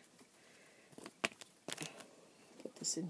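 Hands knock and rustle against a microphone up close.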